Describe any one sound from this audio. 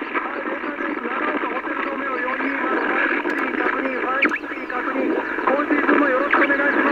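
A radio receiver hisses with static and garbled, warbling signals through its loudspeaker.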